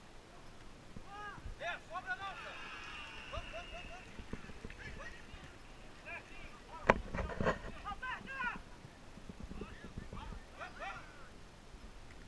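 Young men shout to each other across an outdoor field.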